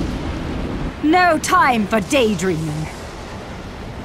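A young woman speaks calmly in a low, teasing voice, close by.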